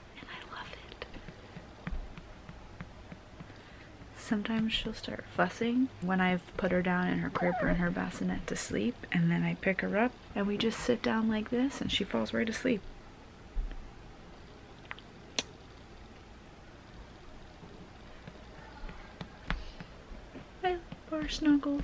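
A young woman talks warmly and close up.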